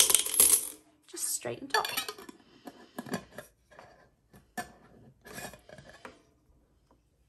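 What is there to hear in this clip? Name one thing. Coins rattle and clink inside a glass jar.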